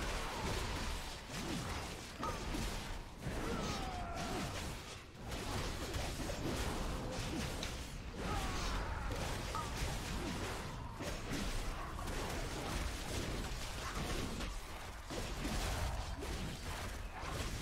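Weapons clash and strike repeatedly in a game fight.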